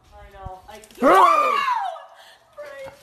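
A woman cries out loudly close by.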